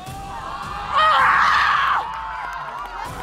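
A young woman shouts excitedly.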